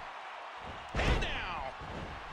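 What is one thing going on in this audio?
A body slams onto a wrestling ring mat.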